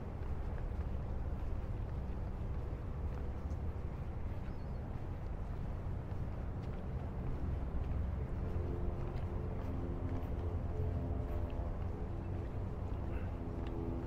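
Water laps gently against a harbour wall.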